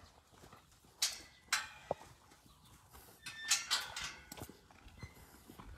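A metal gate rattles and clanks.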